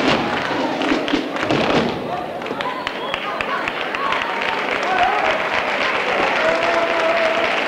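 A group of performers sings together.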